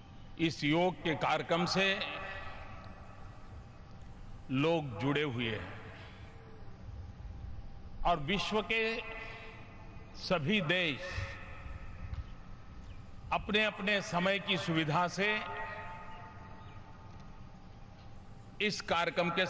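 An elderly man speaks forcefully in short phrases through a microphone and loudspeakers, echoing widely across an open space.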